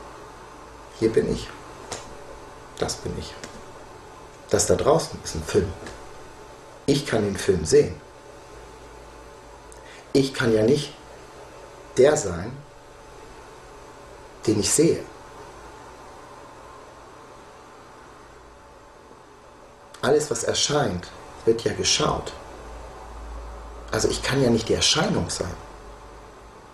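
A middle-aged man speaks calmly and close by, in short bursts with pauses.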